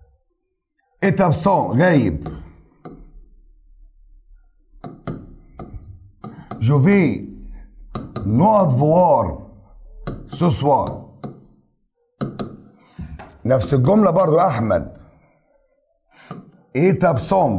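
A man speaks calmly and clearly, as if teaching, close to a microphone.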